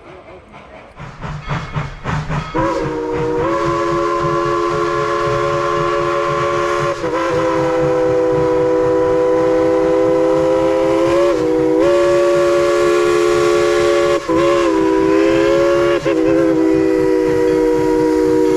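A steam locomotive chuffs rhythmically as it approaches.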